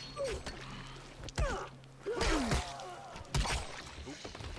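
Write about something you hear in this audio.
A wooden bat strikes a body with heavy thuds.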